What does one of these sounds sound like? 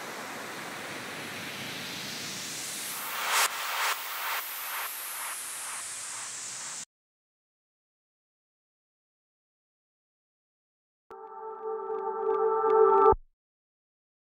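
Electronic music plays in short bursts.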